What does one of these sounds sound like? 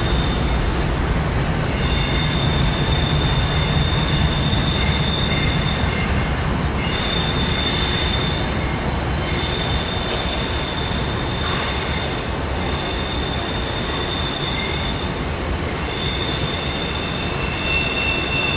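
A long freight train rumbles steadily along in the distance.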